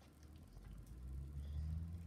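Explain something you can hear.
A puppy crunches dry food from a bowl.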